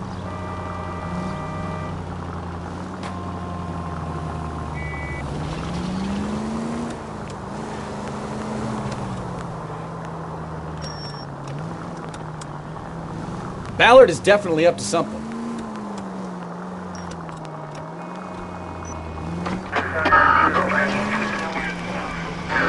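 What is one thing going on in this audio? A car engine hums steadily, rising and falling in pitch as the car speeds up and slows down.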